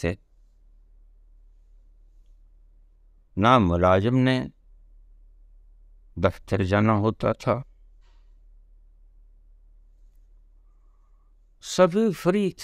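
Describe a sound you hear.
An elderly man speaks slowly and calmly close to the microphone, in short bursts with pauses.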